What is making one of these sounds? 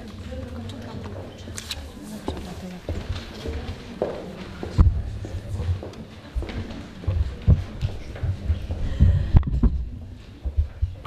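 A crowd murmurs and chatters in a large room.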